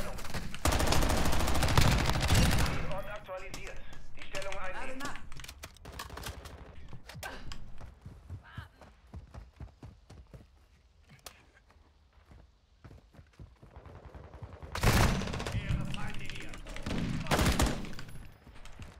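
Gunfire rattles in short loud bursts.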